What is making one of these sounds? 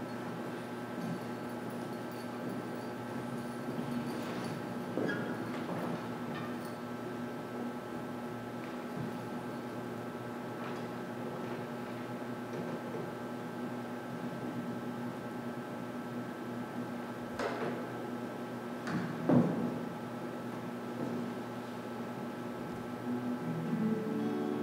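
A string orchestra plays softly in a large echoing hall.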